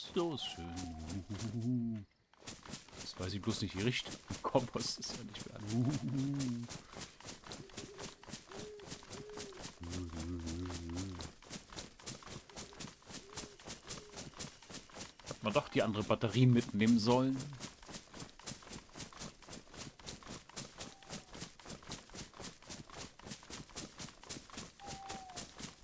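Footsteps rustle steadily through low undergrowth.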